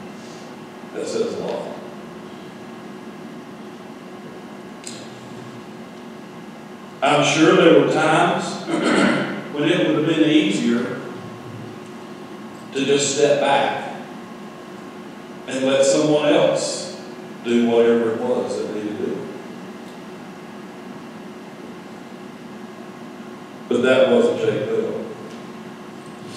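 A man speaks calmly and slowly through a microphone in an echoing hall, with long pauses.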